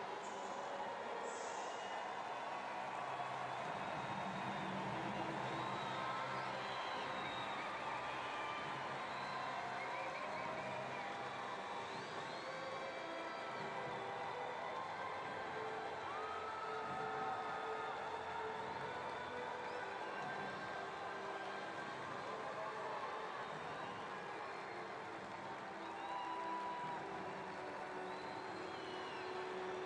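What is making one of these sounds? A large crowd murmurs and chatters in a big open stadium.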